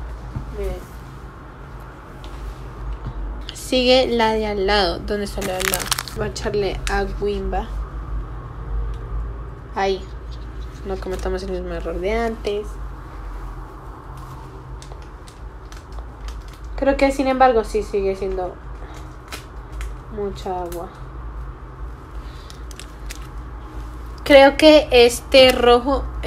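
Plastic rustles and clicks in a young woman's hands.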